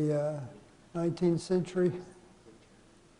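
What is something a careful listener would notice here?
An elderly man lectures through a microphone in a large echoing hall.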